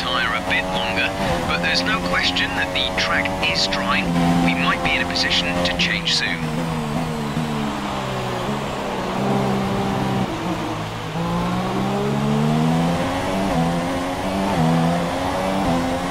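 A racing car engine screams at high revs, dropping and rising in pitch as it shifts gears.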